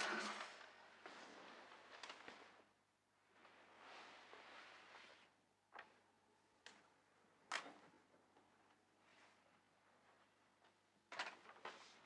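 Paper crinkles and rustles in a woman's hands.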